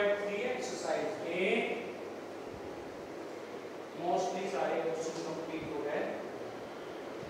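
A man speaks calmly and clearly nearby, explaining in a lecturing tone.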